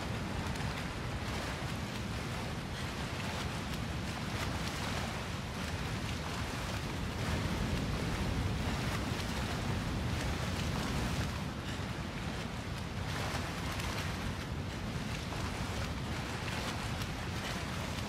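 Water splashes and sloshes as a swimmer strokes through it.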